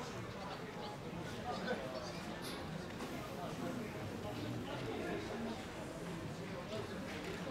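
Spectators chatter nearby outdoors.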